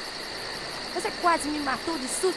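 A girl speaks in a low, determined voice.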